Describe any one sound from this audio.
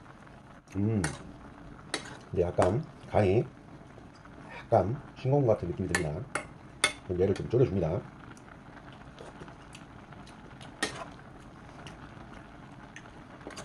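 A metal spoon clinks and scrapes against a pot while stirring beans.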